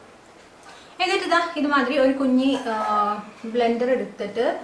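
A young woman speaks calmly and close up into a microphone.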